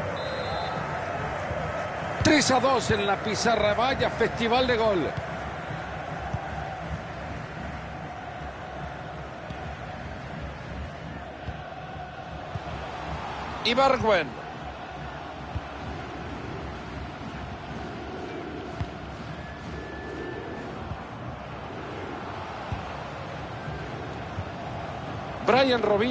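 A stadium crowd roars steadily in the distance.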